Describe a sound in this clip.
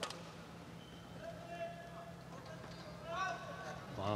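A shuttlecock is struck sharply with a racket.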